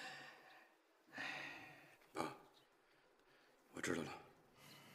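A young man speaks briefly and quietly, close by.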